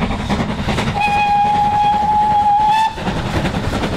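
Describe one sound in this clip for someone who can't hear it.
A steam locomotive's whistle blows a long, steady note.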